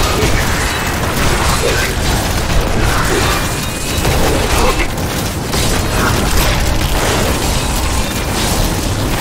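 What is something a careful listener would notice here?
Blows and impacts thud repeatedly in a fight.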